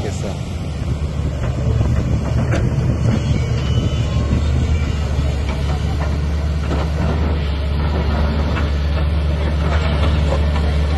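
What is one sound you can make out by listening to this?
A diesel excavator engine rumbles nearby.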